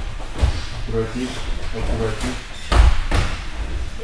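Feet thud on a soft mat.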